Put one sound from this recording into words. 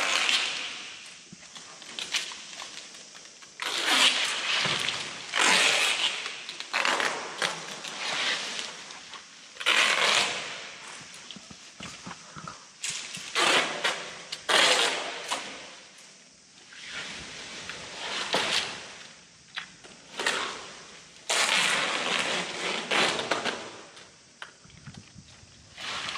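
Dry branches scrape and rustle across the floor in bursts.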